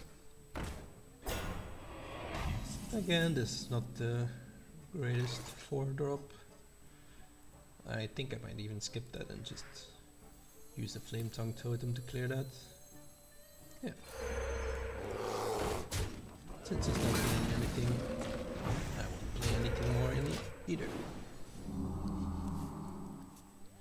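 Game sound effects chime and whoosh as cards are played.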